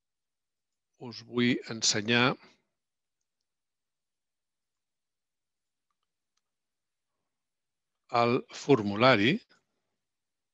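A man speaks briefly over an online call, in two short bursts.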